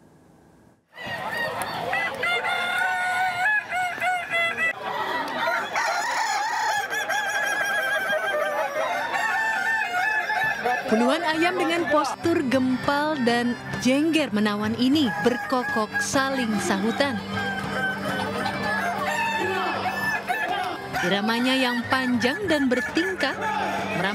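Roosters crow loudly in long, wavering calls.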